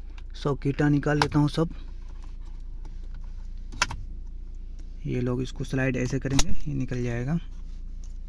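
A plastic connector clicks as it is unplugged.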